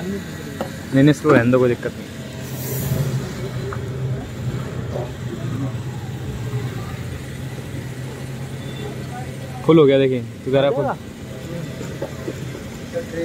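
A fuel pump hums steadily.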